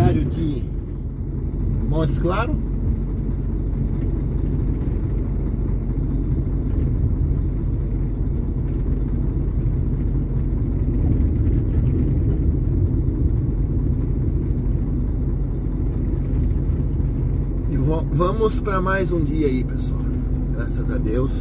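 Tyres roll and hum on a wet road.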